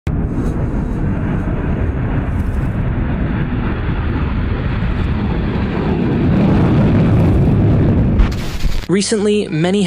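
A jet roars loudly as it speeds down a runway and takes off.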